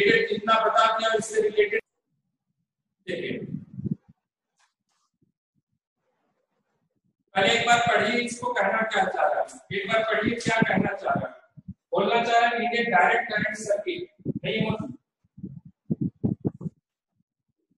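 A young man lectures in a clear, steady voice, close by.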